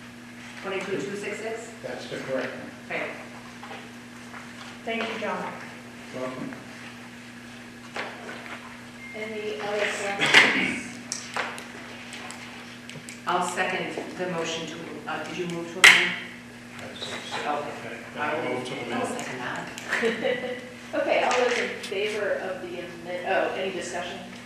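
Adults speak one after another through microphones, with a slight room echo.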